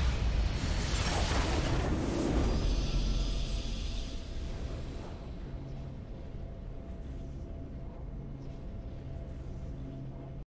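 A triumphant game fanfare plays with swelling music.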